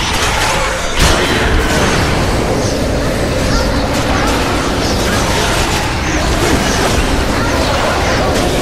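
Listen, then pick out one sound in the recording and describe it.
A magic blast booms and crackles.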